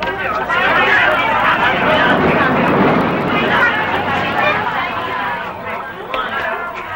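A crowd of men and women chatter and call out loudly nearby.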